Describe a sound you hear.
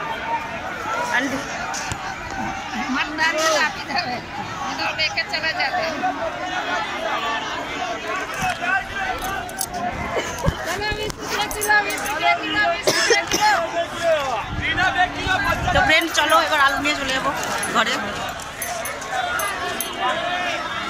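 A crowd chatters around outdoors.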